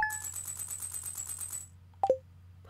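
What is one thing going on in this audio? A rapid ticking chime counts up, then stops.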